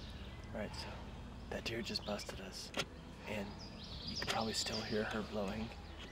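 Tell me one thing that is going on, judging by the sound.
A young man speaks calmly close by, outdoors.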